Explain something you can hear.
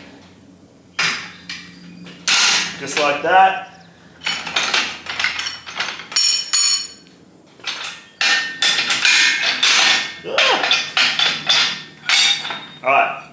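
A metal tube bender clanks and scrapes.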